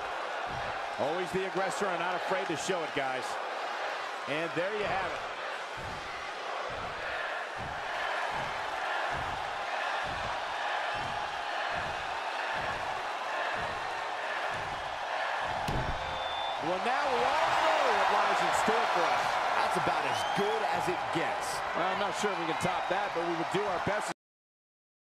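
A large crowd cheers and shouts in a big open arena.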